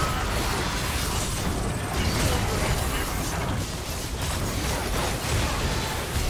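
Game spells and attacks crackle and clash in a fast fight.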